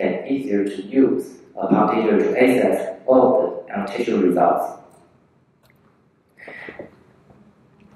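A young man speaks calmly through a microphone in a large echoing hall.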